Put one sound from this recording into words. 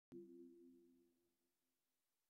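A low electronic startup tone hums briefly and fades.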